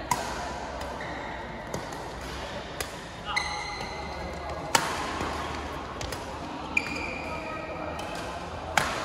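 Rackets smack a shuttlecock in a large echoing hall.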